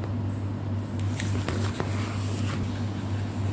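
Notebook pages rustle as they are turned.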